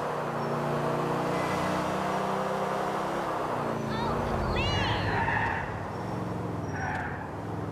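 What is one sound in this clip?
A car engine hums steadily as a car drives along a road.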